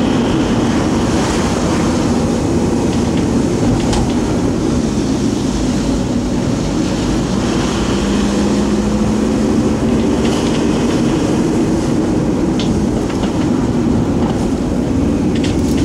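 Tyres roll on a wet road.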